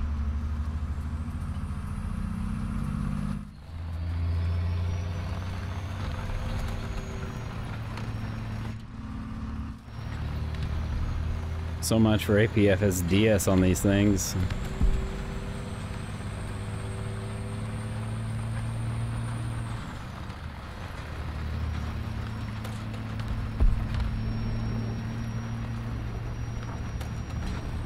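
A tank engine rumbles and drones steadily.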